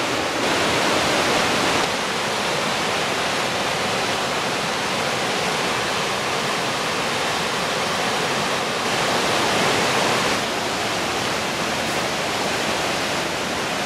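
A rushing stream splashes steadily over rocks.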